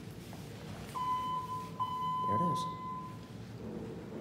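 An elevator chime rings with a steady tone.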